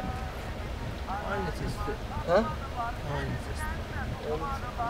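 Another young man asks a short question calmly up close.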